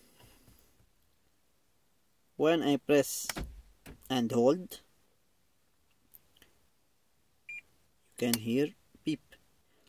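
A switch clicks.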